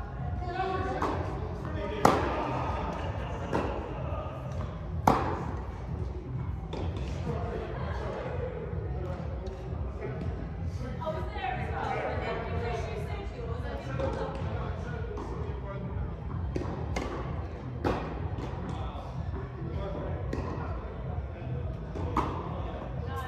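Tennis balls are struck with rackets, echoing in a large hall.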